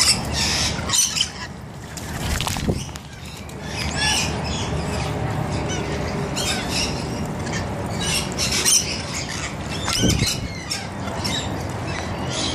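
Parrots screech in short shrill bursts.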